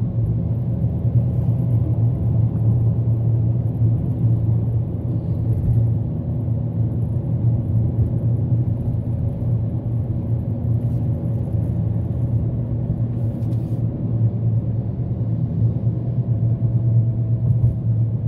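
Tyres roll on the road.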